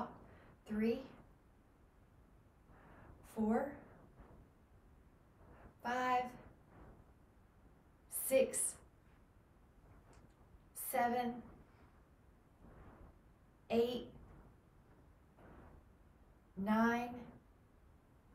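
A young woman calls out short counts while exercising, close by.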